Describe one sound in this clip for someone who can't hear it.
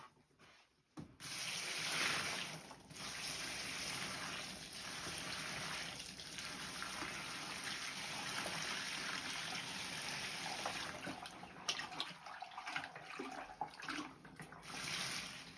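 Water pours in a steady stream into a barrel.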